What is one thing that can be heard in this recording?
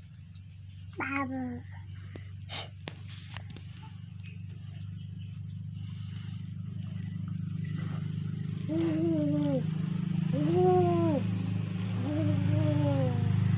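A toddler babbles and calls out in a high voice, close by.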